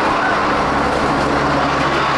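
A plastic barrel scrapes and bumps as it is hauled.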